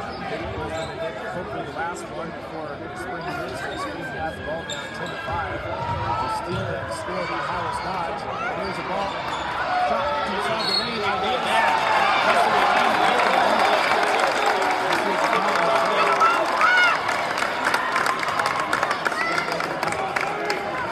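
A crowd chatters and cheers loudly in a large echoing gym, growing louder.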